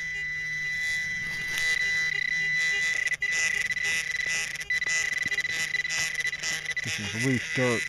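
A probe scrapes through loose soil.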